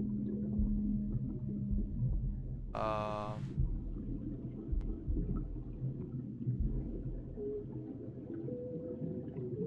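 Muffled underwater water rumbles and swirls steadily.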